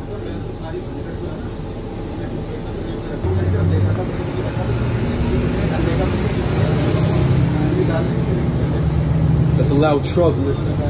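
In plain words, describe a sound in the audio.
A bus engine hums and rumbles steadily from inside.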